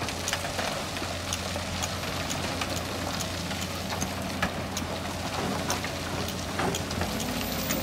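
Rocks and earth clatter into a dump truck bed.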